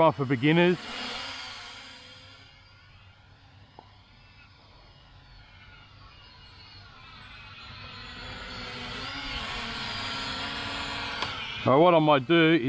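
A small drone buzzes in the air, its whine rising and falling in pitch.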